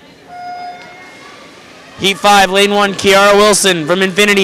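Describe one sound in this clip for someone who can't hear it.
Swimmers dive and splash into the water.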